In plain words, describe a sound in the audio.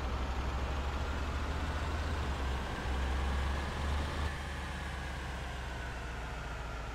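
A bus engine hums steadily, then eases off.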